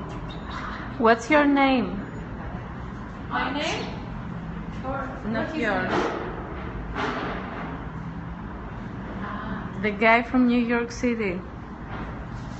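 A woman speaks loudly with animation close by.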